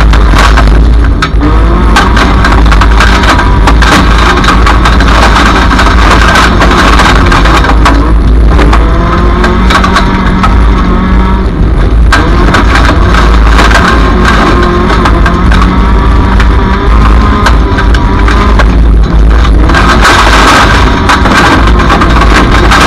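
Mud and stones clatter and knock against the car's body.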